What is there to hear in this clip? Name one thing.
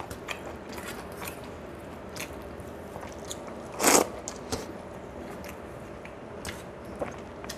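Fingers squish and mix rice on a metal plate.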